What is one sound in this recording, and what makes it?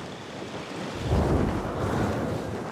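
Feet land with a heavy thud.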